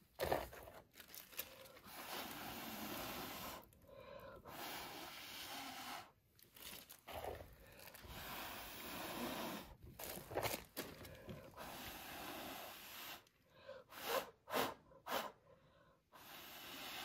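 A person blows air through a straw in long, breathy puffs close by.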